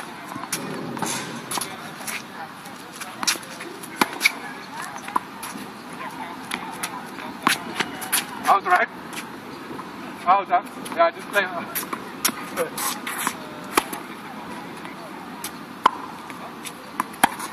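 Sneakers scuff and squeak on a hard court.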